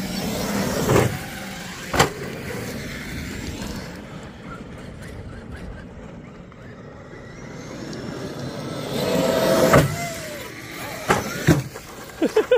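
A radio-controlled car lands with a thud after a jump.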